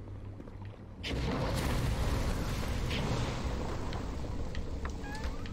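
Flames burst out with a loud roar and crackle.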